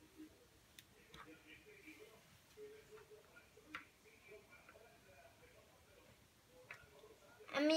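Small plastic toys click lightly as they are set down.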